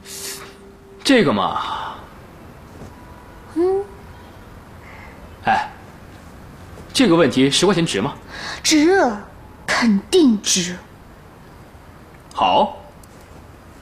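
A man speaks in a teasing, playful tone.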